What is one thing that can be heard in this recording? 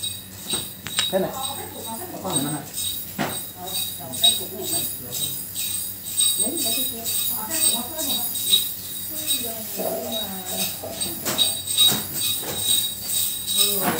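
Adults talk nearby.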